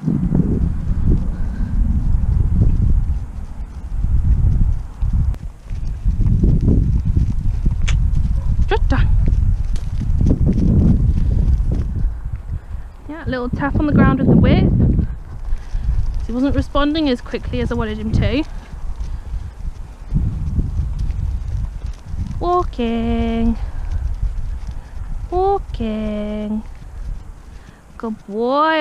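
A horse trots in circles on soft grass with muffled hoofbeats.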